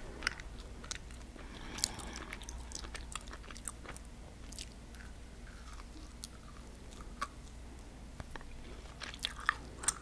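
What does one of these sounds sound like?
A woman chews chewy candy close to a microphone, with soft wet mouth sounds.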